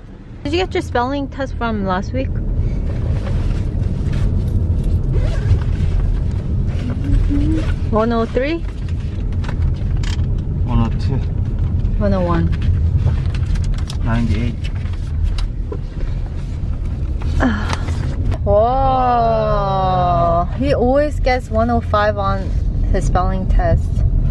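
A car engine rumbles steadily inside the cabin.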